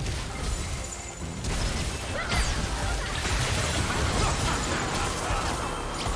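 Game spells whoosh and crash in a busy fight.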